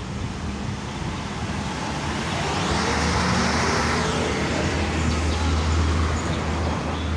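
Traffic rumbles past on a nearby road outdoors.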